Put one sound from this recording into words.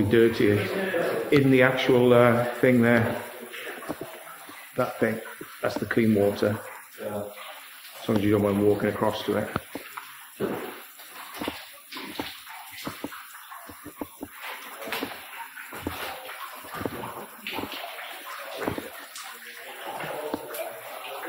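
Footsteps crunch on a gritty floor.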